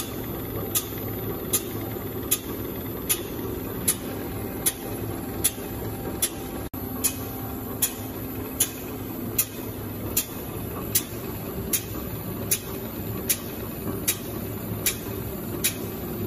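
A lapping machine hums and grinds steadily.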